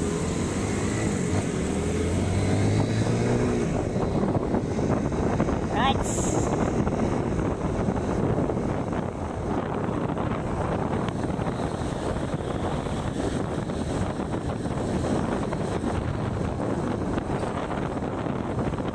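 An engine hums steadily while moving along a road.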